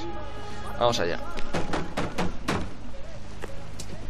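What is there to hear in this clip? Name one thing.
A fist knocks on a wooden door.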